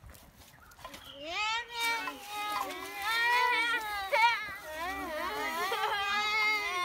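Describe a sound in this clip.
Children talk excitedly outdoors.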